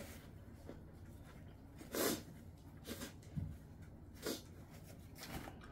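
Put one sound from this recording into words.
A paper tissue rustles close by.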